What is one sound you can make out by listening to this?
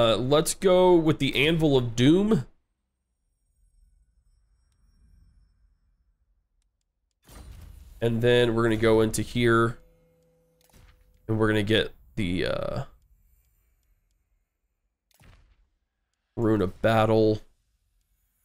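A man speaks with animation into a close microphone, in bursts with pauses.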